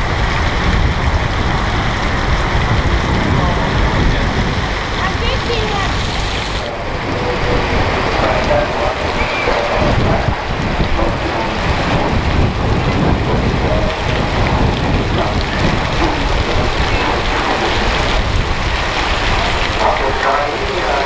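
Wind gusts outdoors, rumbling across the microphone.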